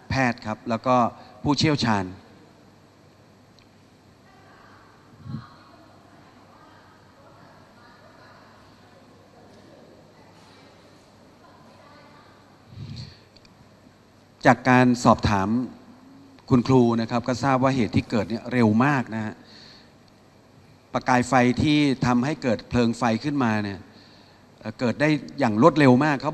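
A middle-aged man speaks firmly into a microphone, with pauses between phrases.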